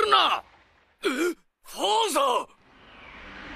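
A second man shouts in alarm, close by.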